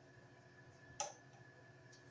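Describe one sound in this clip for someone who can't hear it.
Pliers snip sharply.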